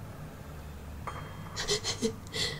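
A magical chime sparkles.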